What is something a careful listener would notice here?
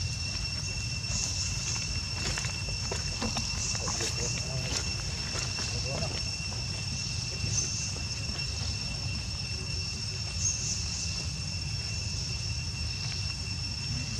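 A small monkey rustles and crunches dry leaves close by.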